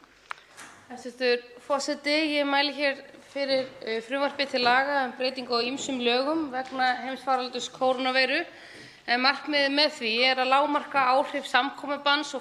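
A woman speaks steadily into a microphone.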